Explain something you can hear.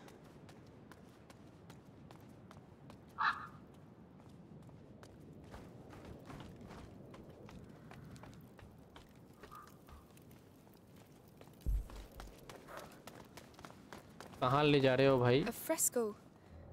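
Footsteps crunch quickly over gravel and grass.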